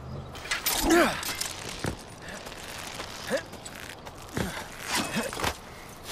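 Hands grip and pull on a rope while climbing.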